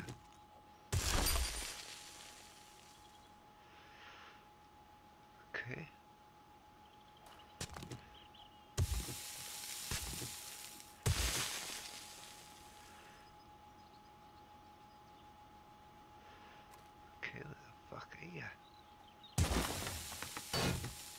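A pickaxe strikes rock and gravel with loud crunching thuds.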